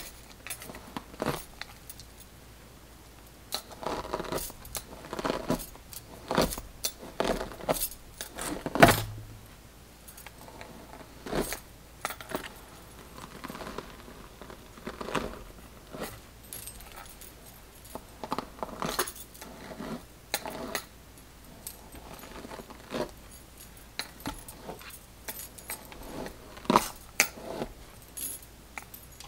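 Bracelets jingle softly on a wrist.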